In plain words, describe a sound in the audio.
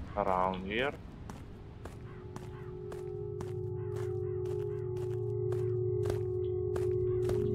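Footsteps tread steadily over ground.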